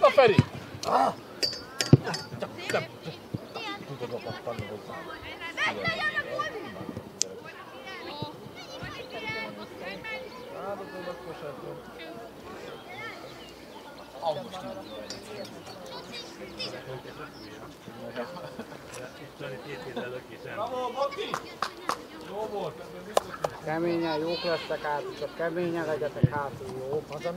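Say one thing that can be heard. Young players shout and call to each other outdoors across an open field.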